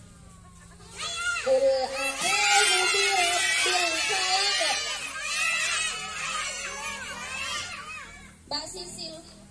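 Young girls shout and cheer loudly together outdoors.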